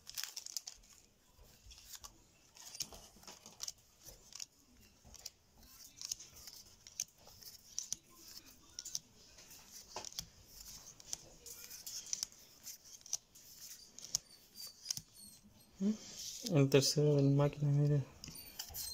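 Hands shuffle through a stack of glossy trading cards, the cards flicking and sliding against each other.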